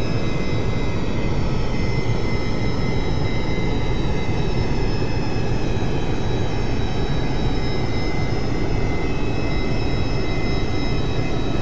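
Aircraft engines drone steadily in a cockpit.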